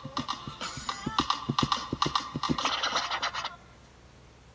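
Fast electronic game music plays through a small speaker.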